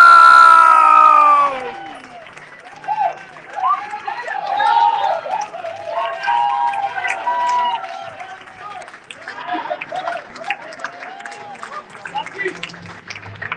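Hands clap in quick bursts.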